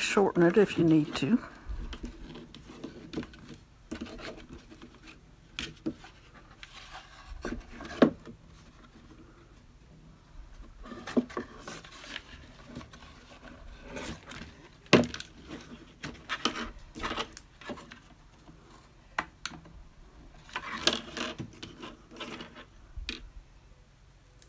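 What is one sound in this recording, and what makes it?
Cardboard and wood knock and scrape on a table as they are handled.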